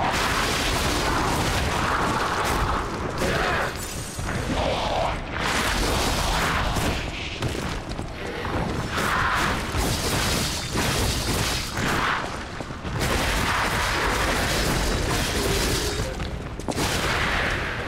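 Fire crackles and bursts in flashes.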